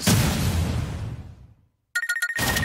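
A heavy punch lands with a booming impact that fades away.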